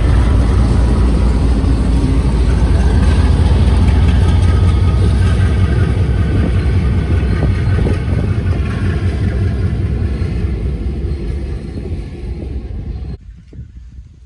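A diesel locomotive engine roars as it passes.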